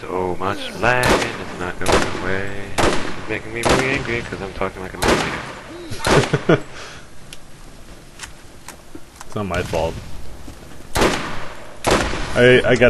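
Rifle shots crack loudly, a few seconds apart.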